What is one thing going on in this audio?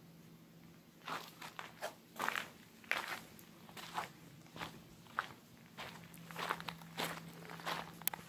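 Footsteps crunch on a dry dirt trail outdoors.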